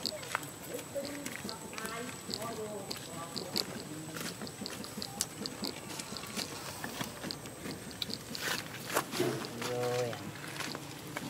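A baby monkey squeals and whimpers close by.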